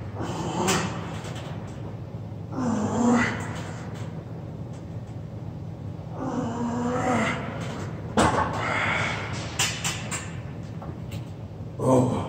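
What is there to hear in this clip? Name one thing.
Weight plates clank on an exercise machine.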